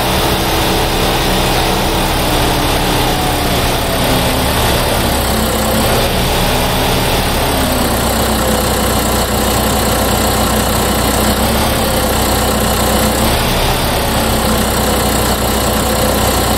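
A tractor engine rumbles steadily as it drives slowly.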